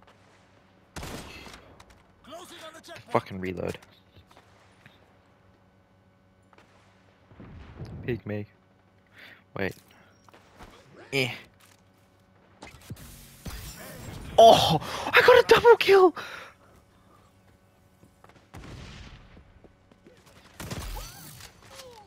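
A sniper rifle fires loud, sharp shots.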